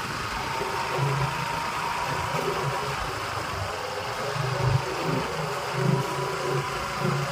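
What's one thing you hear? A motorbike engine rumbles as it approaches.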